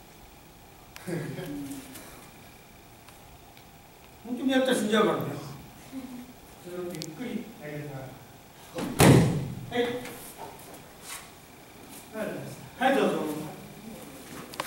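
An elderly man speaks calmly, explaining.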